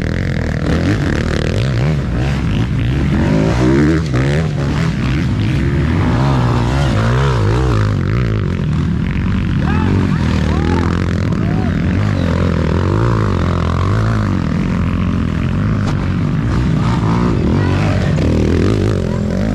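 Several dirt bike engines rev and roar loudly, rising and falling in pitch.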